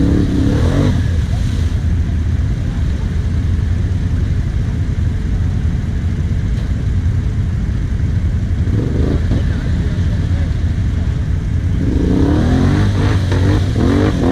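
A quad bike engine revs as it crawls through mud.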